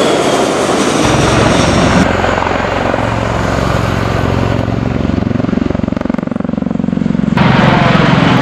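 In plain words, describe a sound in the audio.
A tiltrotor aircraft roars and thumps overhead.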